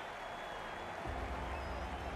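A bat strikes a cricket ball.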